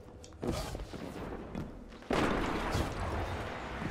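Footsteps clatter up metal stairs.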